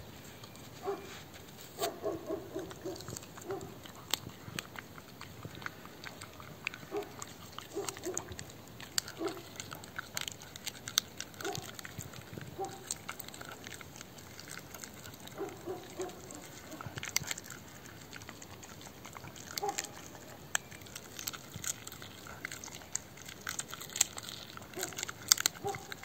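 A dog growls and snarls up close.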